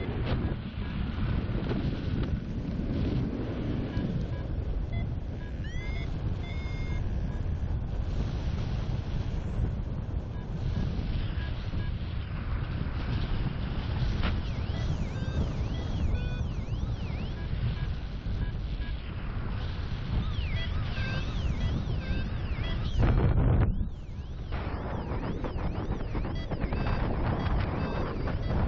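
Wind roars steadily past the microphone outdoors.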